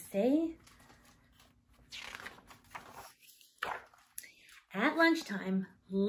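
A woman reads aloud expressively, close by.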